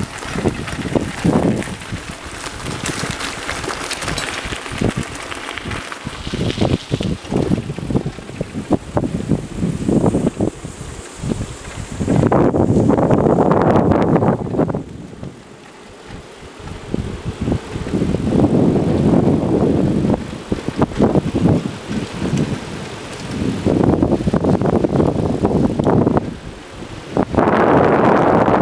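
Bicycle tyres rumble and rattle over a rough path and wooden boards.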